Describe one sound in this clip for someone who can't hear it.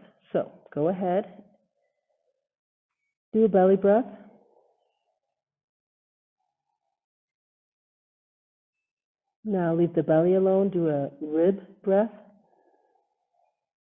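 A woman speaks calmly over an online call, guiding a class in short phrases.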